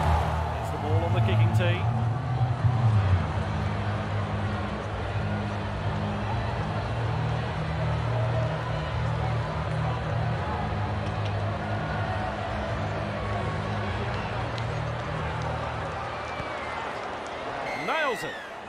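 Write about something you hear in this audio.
A large crowd murmurs and hums steadily in a stadium.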